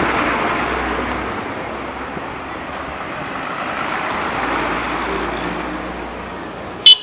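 A bus engine roars as a bus passes close by.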